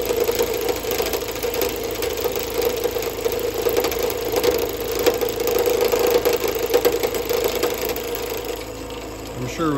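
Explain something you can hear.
A chisel scrapes and shaves spinning wood.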